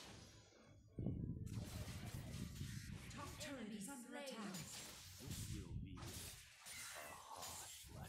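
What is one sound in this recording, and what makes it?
Video game spells whoosh and blows thud in a fast fight.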